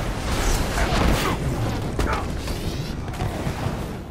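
Repulsor beams fire with sharp zapping bursts.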